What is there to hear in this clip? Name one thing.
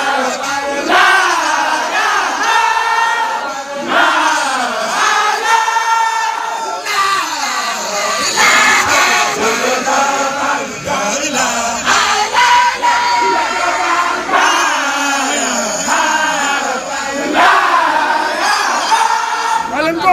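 A man sings loudly up close, his voice strained with emotion.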